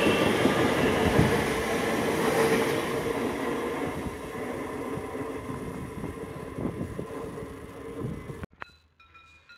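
A train rushes past close by with a loud rumble of wheels on the rails, then fades into the distance.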